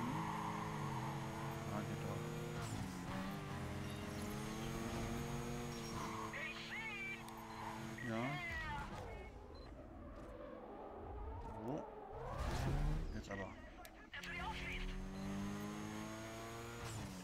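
A sports car engine revs hard at high speed.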